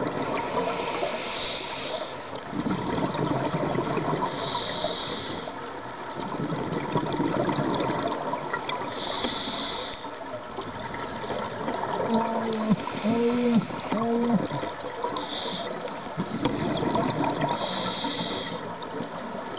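Scuba bubbles burble and hiss underwater in regular bursts.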